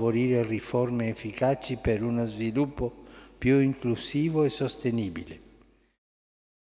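An elderly man reads out slowly into a microphone in a reverberant hall.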